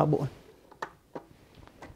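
A glass knocks onto a machine's drip tray.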